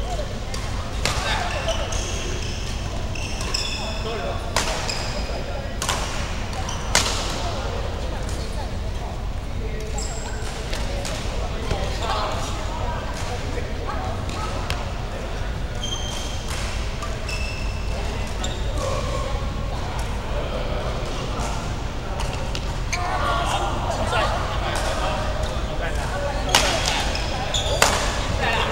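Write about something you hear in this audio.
Rackets hit a shuttlecock with sharp pops in an echoing hall.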